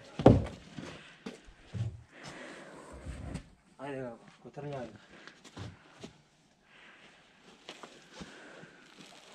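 Wooden logs knock and thud against each other.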